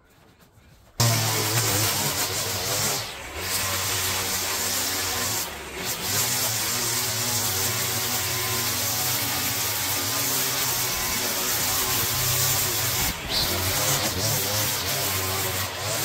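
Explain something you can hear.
A string trimmer buzzes loudly close by, cutting grass.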